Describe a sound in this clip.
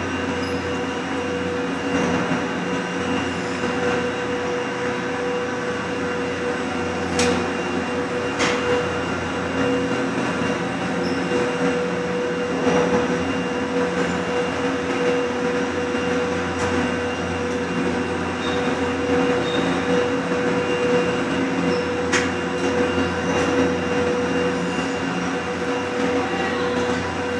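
Lift machinery hums steadily in an echoing station.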